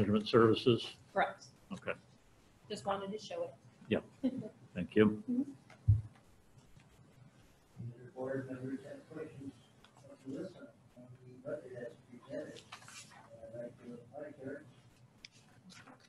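People take turns speaking calmly through microphones at a meeting table.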